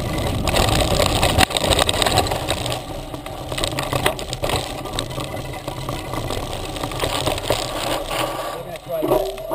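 Bike tyres crunch over a dirt trail.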